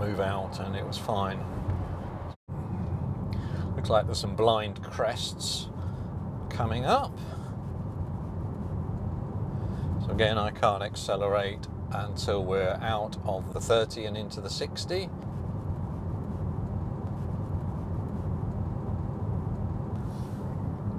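Tyres rumble on a road, heard from inside an electric car.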